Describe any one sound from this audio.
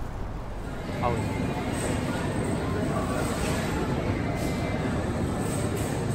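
A busy indoor space hums with soft background chatter.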